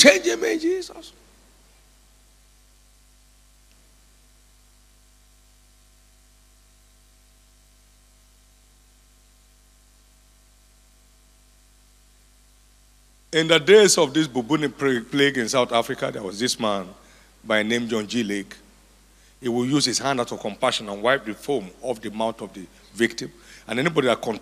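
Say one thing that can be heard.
A man speaks into a microphone with animation, heard through loudspeakers in a large echoing hall.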